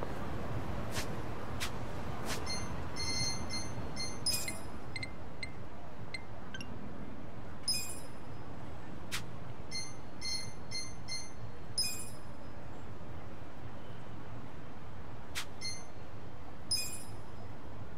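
Short electronic menu beeps and clicks sound as options are selected.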